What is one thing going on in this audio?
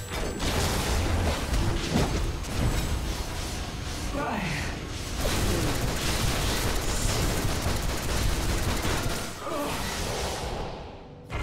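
Energy blasts crackle and boom in a fast video game fight.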